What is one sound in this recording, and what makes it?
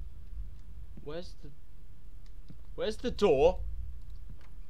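A young man speaks through a microphone with animation, in short bursts.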